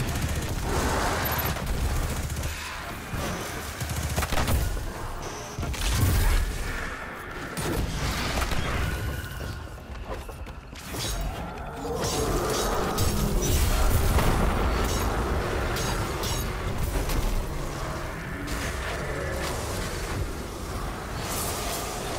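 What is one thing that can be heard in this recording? Explosions boom with heavy rumbling in a video game.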